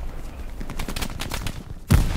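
A rifle fires a loud shot close by.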